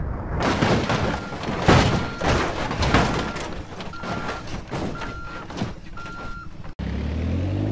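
A vehicle crashes with loud bangs and crunching metal.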